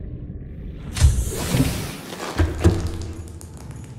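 A door slides open with a loud whoosh.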